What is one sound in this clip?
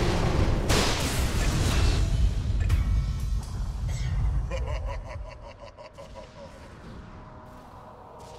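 A game hero's attacks clash and thud.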